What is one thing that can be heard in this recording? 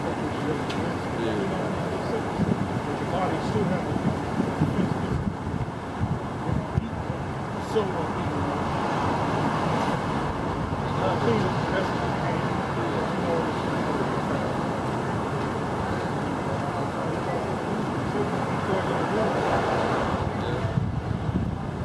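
A man reads aloud steadily outdoors, close by.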